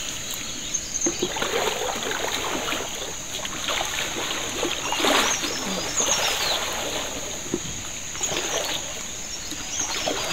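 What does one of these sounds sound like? Water splashes in a shallow stream.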